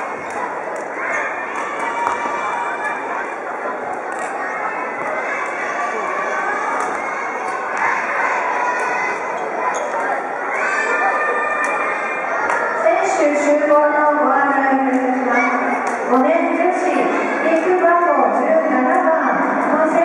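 Children chatter and call out in a large echoing hall.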